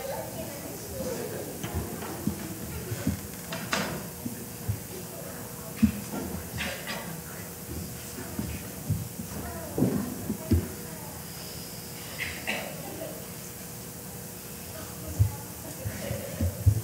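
Footsteps and soft thumps sound in a large echoing hall.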